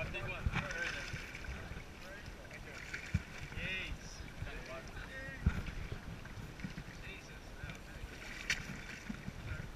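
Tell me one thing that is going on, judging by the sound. Water splashes and churns as fish thrash at the surface beside a boat.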